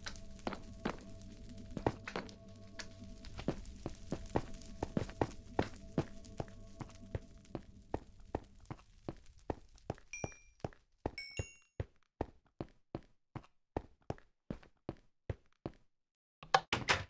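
Footsteps tap quickly and steadily on stone.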